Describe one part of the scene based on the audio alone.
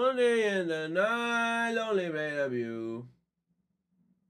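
A young man speaks in a loud, drawn-out voice close to a microphone.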